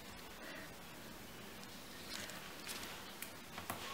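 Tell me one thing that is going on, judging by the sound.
Paper rustles softly as a stencil is peeled off a card.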